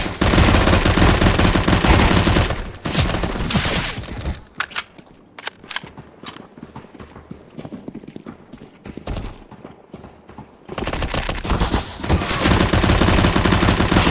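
A submachine gun fires rapid bursts of loud shots.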